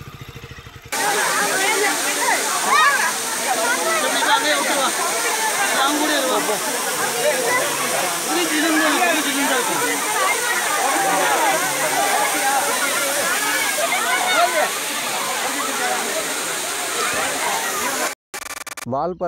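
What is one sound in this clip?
A large crowd of men and women chatters loudly nearby.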